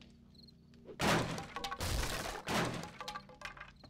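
A wooden club smashes hard against something.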